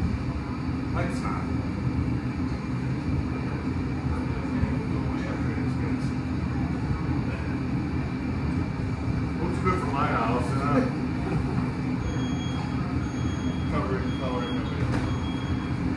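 A middle-aged man speaks calmly and close by.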